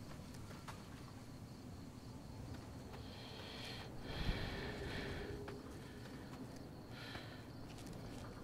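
Footsteps crunch slowly over gravel.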